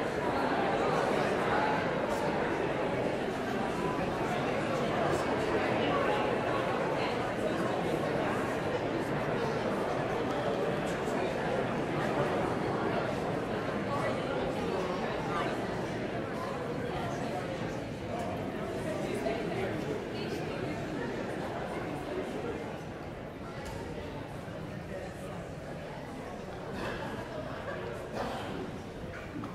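A crowd of men and women chatter and greet one another in a large echoing hall.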